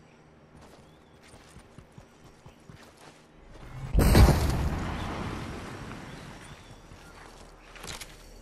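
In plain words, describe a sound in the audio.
Footsteps patter quickly across grass.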